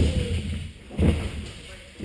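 A bike lands hard with a thud.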